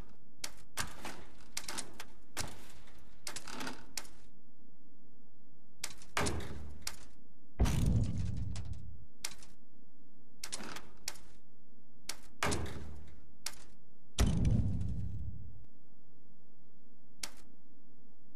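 Menu clicks and short whooshes sound as options are selected.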